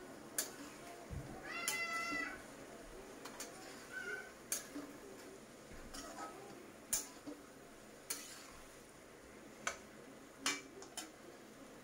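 Chickpeas sizzle in a pan.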